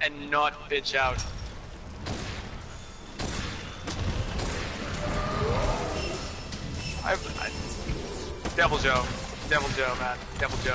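A huge beast growls and rumbles close by.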